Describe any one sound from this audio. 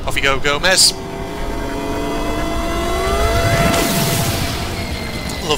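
A shimmering electronic tone swells and rises, then bursts into a bright whoosh.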